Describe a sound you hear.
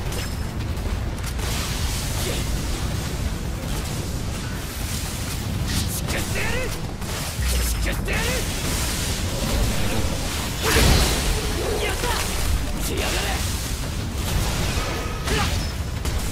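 Gas jets hiss in bursts.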